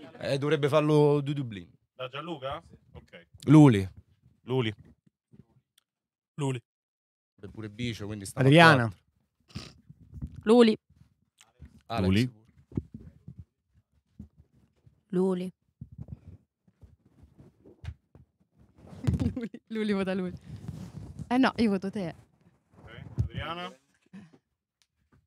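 A young man speaks with animation into a microphone, in short bursts with pauses.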